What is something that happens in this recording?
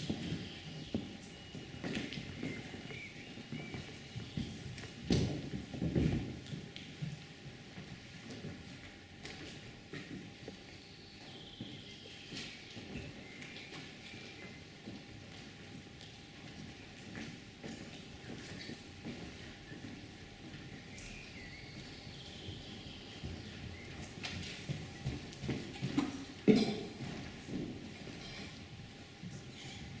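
A violin plays short, quiet tuning notes.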